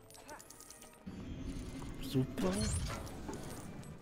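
A magic spell shimmers and sparkles.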